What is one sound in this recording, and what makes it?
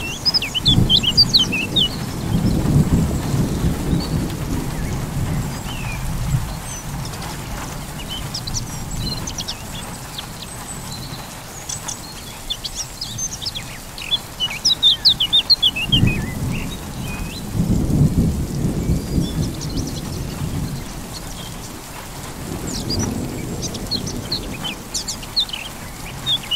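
Thunder rumbles deeply in rolling waves.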